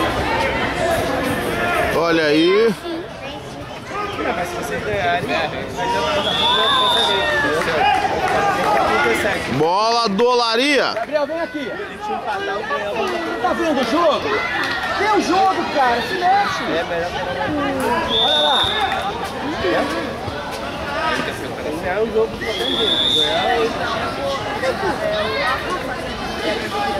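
Children shout and call out across an open outdoor field.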